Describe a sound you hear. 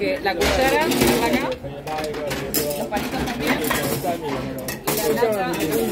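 A tray with a bowl and a can clatters onto a conveyor belt.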